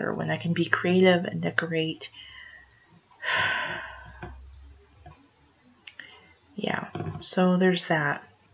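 A middle-aged woman speaks calmly and close to a microphone, with pauses.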